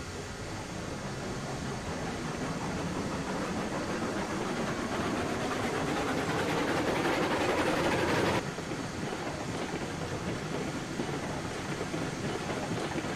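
Steel wheels rumble and clack over rail joints.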